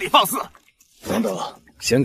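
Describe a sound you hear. An older man calls out sharply.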